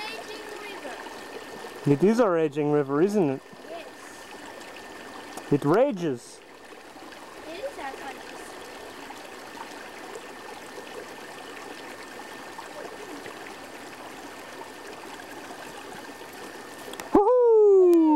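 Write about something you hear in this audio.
A stream babbles steadily over rocks.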